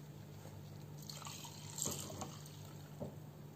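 Milk pours into a mug.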